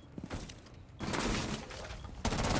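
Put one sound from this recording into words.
A rifle fires a short burst of shots.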